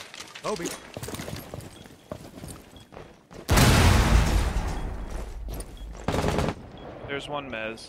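Gunshots crack loudly in short bursts.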